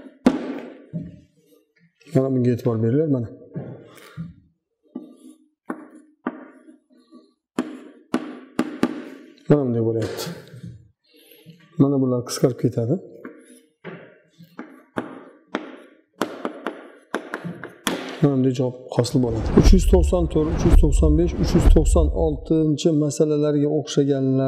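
A middle-aged man speaks calmly and clearly, explaining as a teacher.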